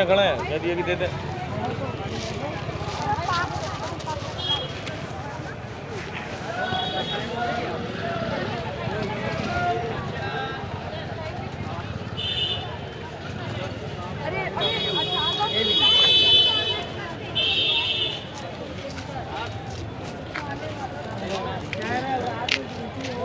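A busy outdoor crowd murmurs and chatters all around.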